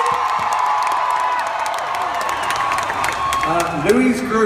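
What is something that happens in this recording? A crowd cheers and screams in a large hall.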